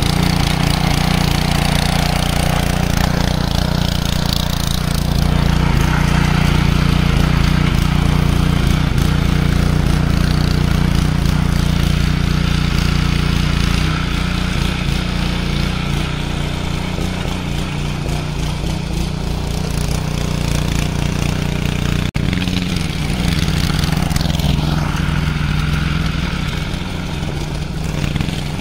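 A small petrol engine of a garden tiller runs loudly and steadily close by.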